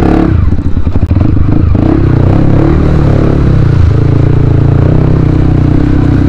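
Water splashes under a motorcycle's wheels.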